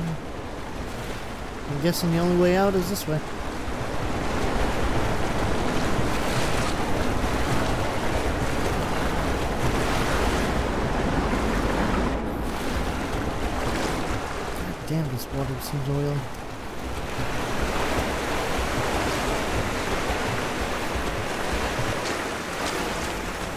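Water splashes and sloshes as a person wades and swims through it.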